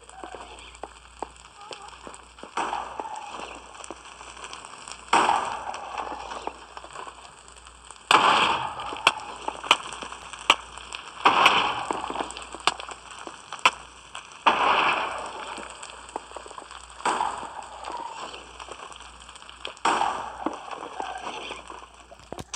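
Fire crackles and pops.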